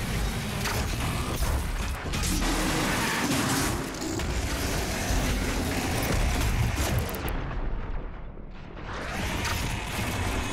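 Heavy gunfire and explosions boom.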